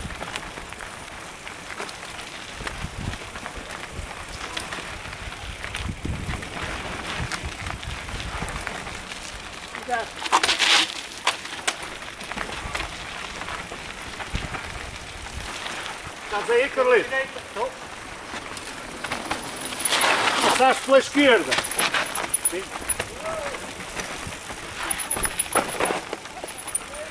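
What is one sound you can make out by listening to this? Bicycle tyres roll and crunch over a dirt and rocky trail.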